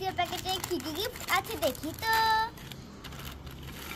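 A plastic snack packet crinkles as it is torn open.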